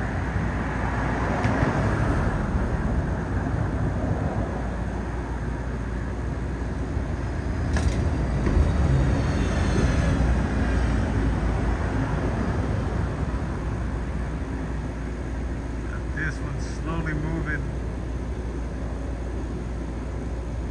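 A jet plane rumbles faintly far overhead.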